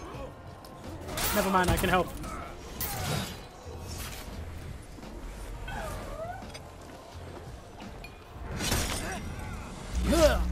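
Swords clash and strike in a fight.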